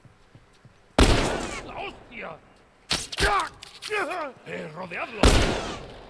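A bowstring twangs sharply as an arrow is loosed.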